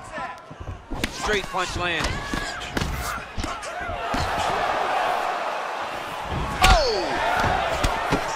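Punches land on a body with dull thuds.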